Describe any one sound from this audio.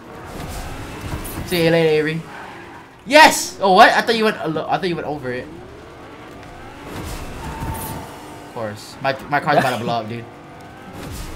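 A car engine roars and revs.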